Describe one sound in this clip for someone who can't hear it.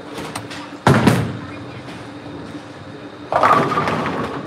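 A bowling ball rumbles down a lane.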